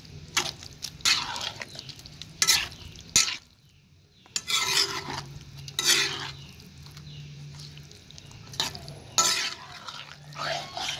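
A metal ladle scrapes and clanks against a metal pan.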